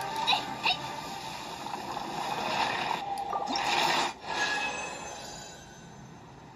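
Video game sound effects play from a tablet speaker.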